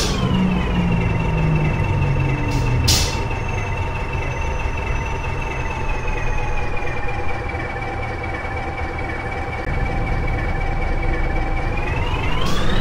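A bus engine idles with a steady hum.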